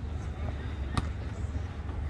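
A soccer ball is kicked with a sharp thud.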